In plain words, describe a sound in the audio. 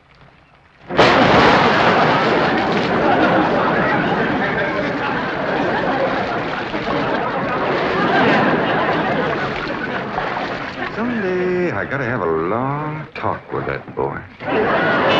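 Water splashes loudly as people thrash in a pool.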